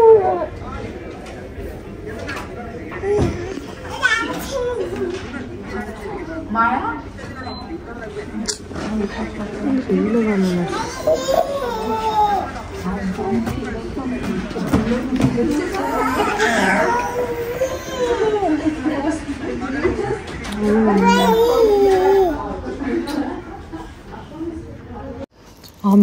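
A woman talks gently to a toddler close by.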